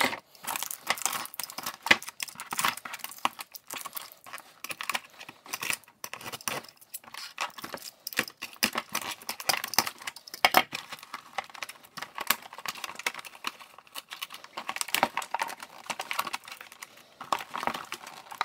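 Plastic wrap crinkles as it is pulled off.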